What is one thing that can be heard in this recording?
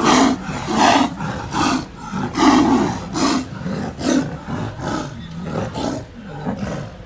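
Two tigers roar and snarl loudly as they fight.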